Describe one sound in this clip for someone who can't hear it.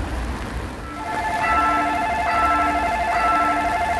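An electric train approaches in the distance.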